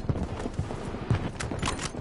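Rifle shots crack in the distance.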